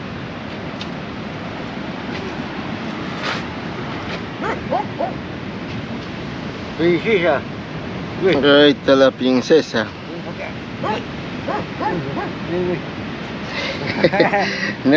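Waves wash against a rocky shore nearby.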